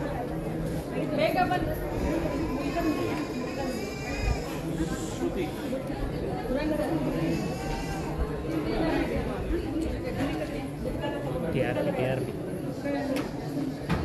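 A small crowd murmurs and chatters nearby.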